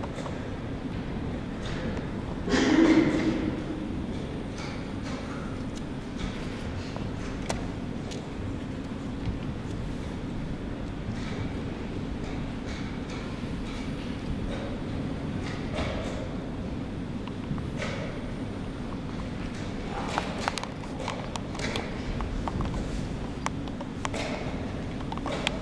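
A crowd murmurs quietly nearby.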